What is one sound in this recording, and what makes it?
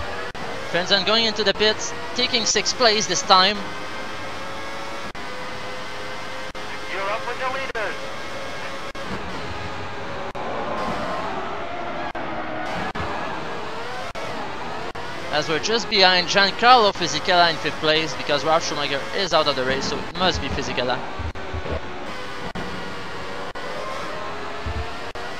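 A racing car engine whines loudly, rising and falling in pitch as the car speeds up and slows down.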